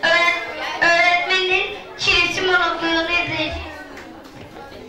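A young boy reads out with animation into a microphone, heard through a loudspeaker in an echoing hall.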